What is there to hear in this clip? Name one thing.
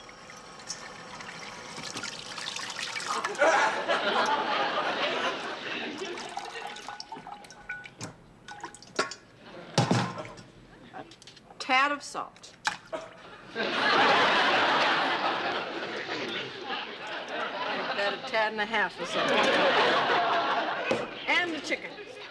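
A young woman talks cheerfully and laughs nearby.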